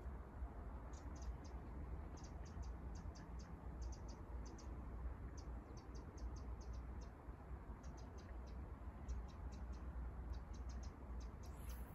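A fishing reel clicks in quick bursts.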